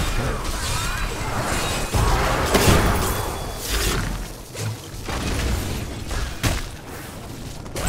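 Objects smash and crumble apart.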